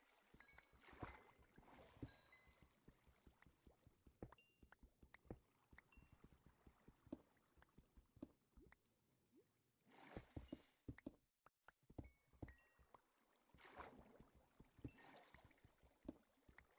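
A pickaxe taps rapidly on stone blocks.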